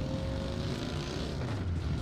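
A car engine drones nearby.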